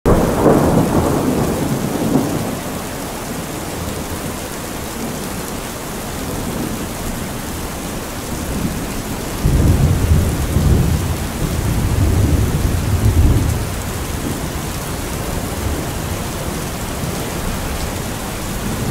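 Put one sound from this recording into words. Heavy rain pours down steadily on a metal roof.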